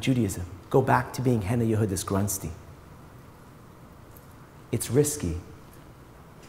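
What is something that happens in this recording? A middle-aged man speaks calmly into a microphone, heard through a loudspeaker in a large room.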